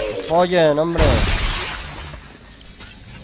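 A weapon fires with a loud blast that fades out.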